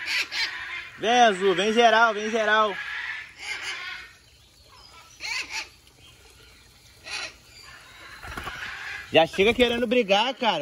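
A parrot squawks loudly in repeated warbling calls.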